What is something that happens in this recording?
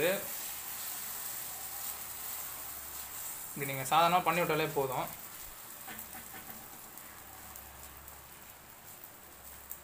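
A spoon scrapes against a pan.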